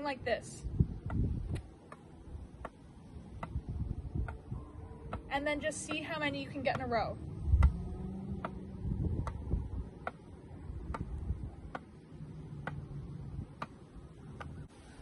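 A tennis ball bounces steadily off a racket with light taps.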